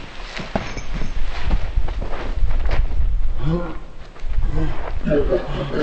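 Two men scuffle and shuffle their feet on the ground.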